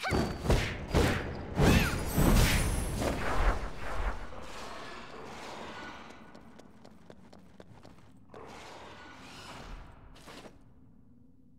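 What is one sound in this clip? Magic bursts crackle and boom.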